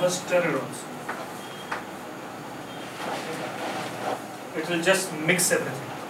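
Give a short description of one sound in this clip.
A middle-aged man lectures with animation, heard close through a microphone.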